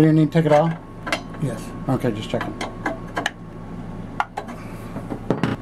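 A metal wrench clicks and scrapes against a fitting.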